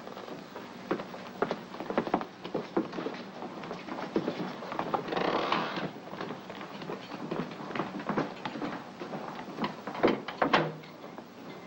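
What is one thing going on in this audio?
Many footsteps clatter on a hard floor.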